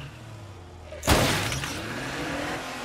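A car smashes into a barrier with a loud crash.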